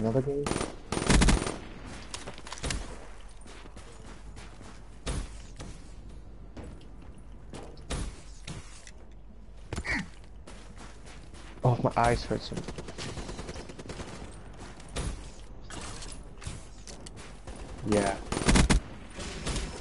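A rifle fires short, quick bursts of shots.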